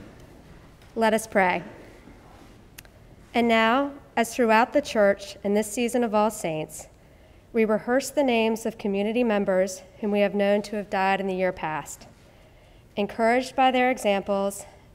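A woman reads aloud calmly through a microphone in a room with some echo.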